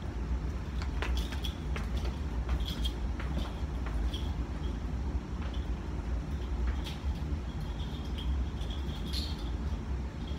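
Footsteps click on a hard floor in an echoing hallway and fade into the distance.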